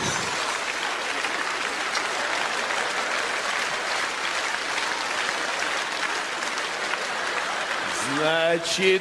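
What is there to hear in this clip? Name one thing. An audience applauds and cheers loudly.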